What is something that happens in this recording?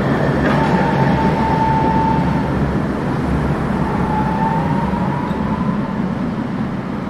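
A tram rumbles along its rails nearby.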